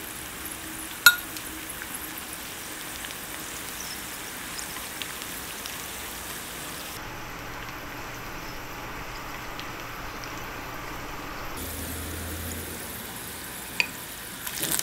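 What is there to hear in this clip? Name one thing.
Chopsticks tap against a pan.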